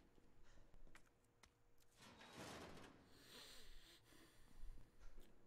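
A man speaks quietly into a close microphone.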